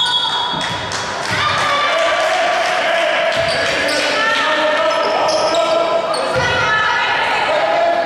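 Young women call out to each other across a large echoing hall.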